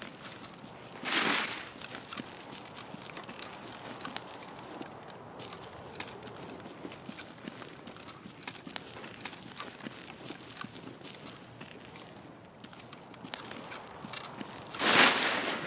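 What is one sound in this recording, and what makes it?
Leafy bushes rustle loudly as someone pushes through them.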